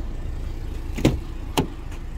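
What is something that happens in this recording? A car door unlatches with a sharp click.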